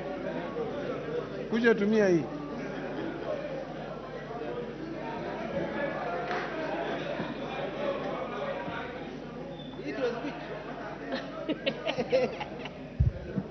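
Many people murmur and talk in a large hall.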